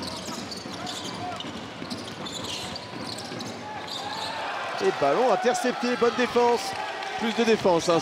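A large indoor crowd murmurs steadily in an echoing arena.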